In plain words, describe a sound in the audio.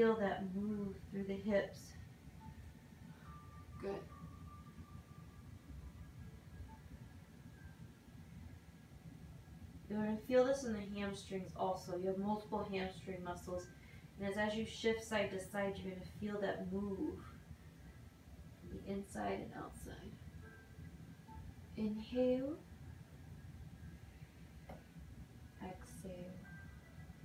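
A woman speaks calmly and steadily, as if instructing, close to a microphone.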